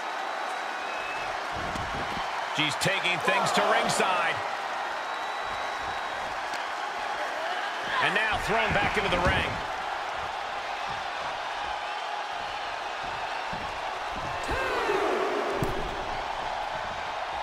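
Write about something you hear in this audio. A large crowd cheers and roars, swelling in loud bursts.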